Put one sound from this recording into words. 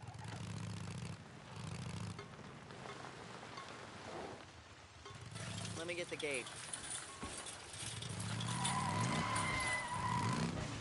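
A motorcycle engine rumbles and revs up and down.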